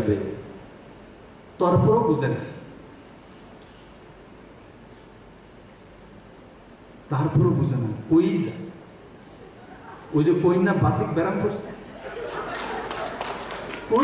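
A man speaks with animation into a microphone, heard through loudspeakers, with long pauses.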